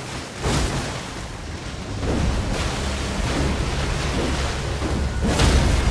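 A huge creature thuds and crashes through water.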